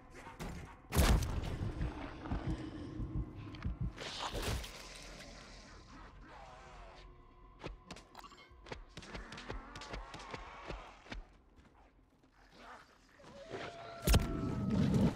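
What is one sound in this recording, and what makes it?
A loud blast booms and echoes.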